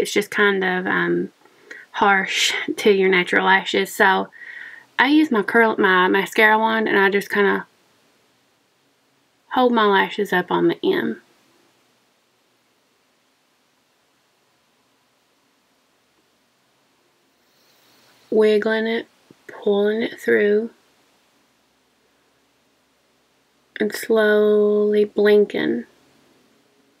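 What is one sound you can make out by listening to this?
A woman speaks calmly, close to the microphone, in short bursts with pauses.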